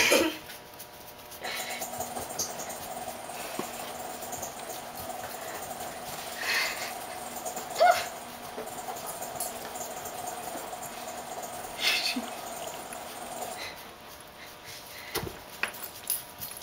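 A hand scratches a dog's fur.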